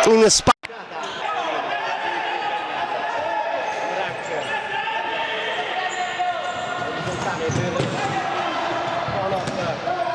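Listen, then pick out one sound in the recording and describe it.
Men shout to each other across an echoing indoor court.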